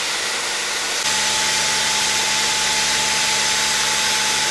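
A pressure washer sprays a hissing jet of water onto a truck.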